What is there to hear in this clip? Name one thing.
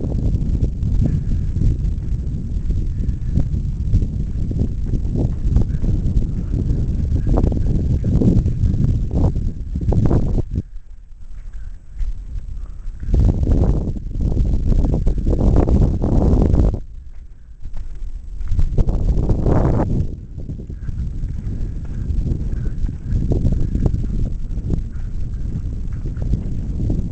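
Strong wind buffets the microphone outdoors, gusting and easing.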